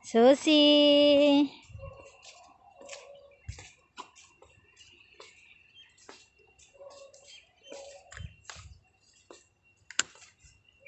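A dog's paws patter softly on paving stones.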